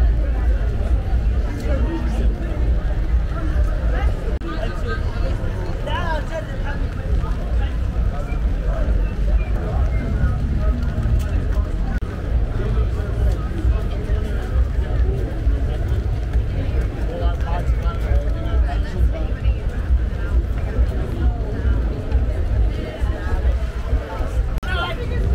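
A crowd of young women and men chatter and call out nearby outdoors.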